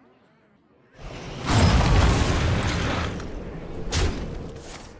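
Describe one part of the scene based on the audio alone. A magical ice blast whooshes and crackles.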